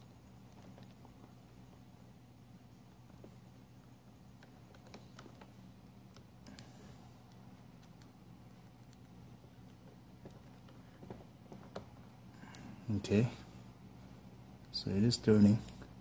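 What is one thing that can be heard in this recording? A small screwdriver scrapes and clicks against a screw.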